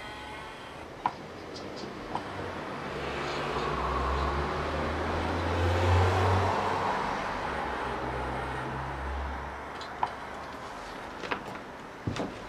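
Fingers tap the pads of a sampler with light clicks.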